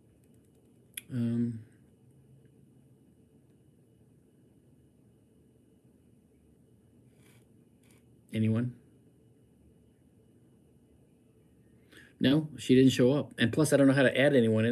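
A middle-aged man speaks close to a microphone, calmly and with animation.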